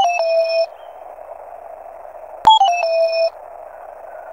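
A retro video game jingle plays short beeping tones.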